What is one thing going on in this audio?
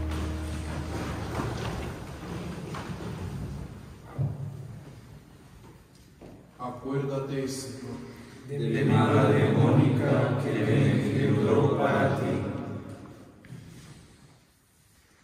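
A group of men chant together in unison, echoing in a large room.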